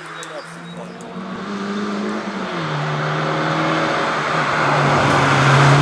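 Another rally car engine revs and grows louder as the car approaches.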